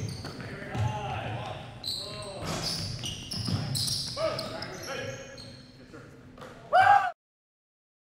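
A basketball thuds on a hard floor in an echoing gym.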